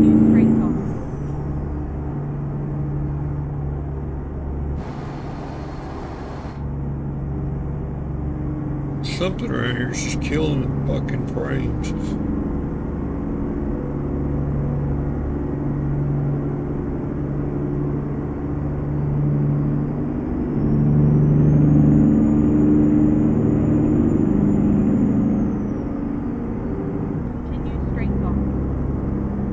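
A truck engine rumbles steadily as it drives.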